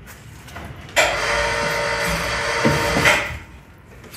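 A small electric motor whines as a toy truck climbs.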